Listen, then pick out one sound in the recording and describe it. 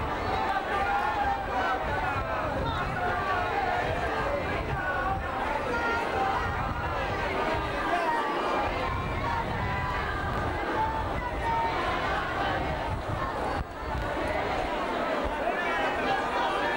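A large outdoor crowd of men and women chatters and calls out.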